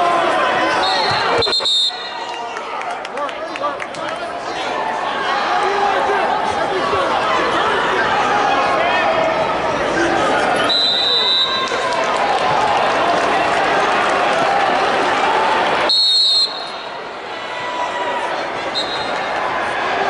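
A referee blows a sharp whistle several times.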